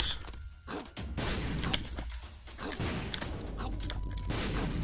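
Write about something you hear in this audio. Soft game sound effects pop and splat as shots hit.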